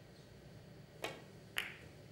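A cue tip strikes a billiard ball with a sharp click.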